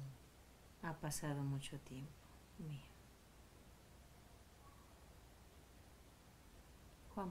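A woman speaks softly and calmly close by.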